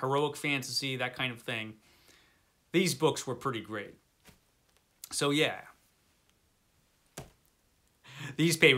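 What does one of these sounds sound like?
A middle-aged man talks with animation close to a microphone, in short bursts.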